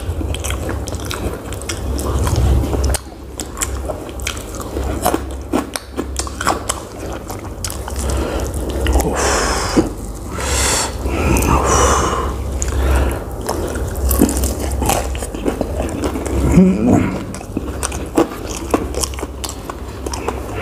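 A young man chews food noisily, close to a microphone.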